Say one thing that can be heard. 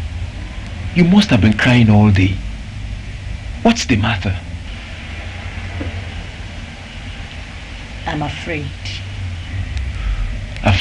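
A woman speaks wearily, close by.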